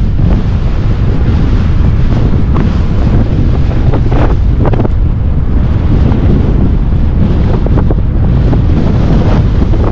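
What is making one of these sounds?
Wind buffets loudly against a microphone outdoors.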